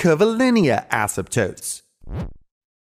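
A man speaks clearly and with animation, close to a microphone.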